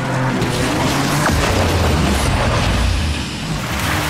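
A car crashes with a loud metallic bang.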